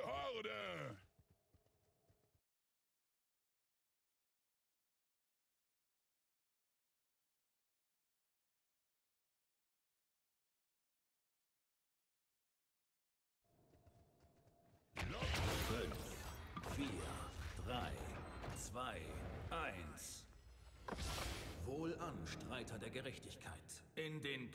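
Game sound effects of spells and blasts ring out.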